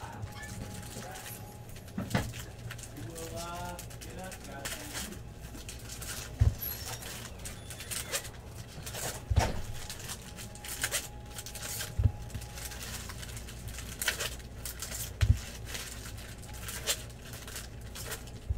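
Foil card packs crinkle and tear as hands rip them open.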